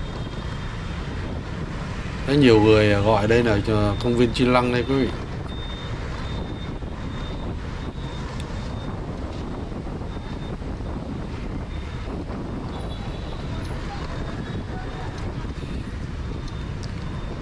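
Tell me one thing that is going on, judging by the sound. Motorbike engines hum and traffic rolls along a busy street outdoors.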